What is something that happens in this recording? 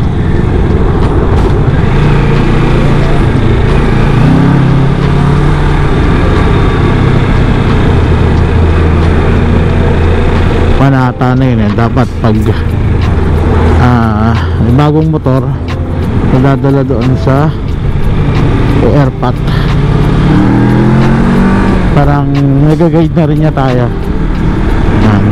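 A motorcycle engine hums and revs up and down throughout.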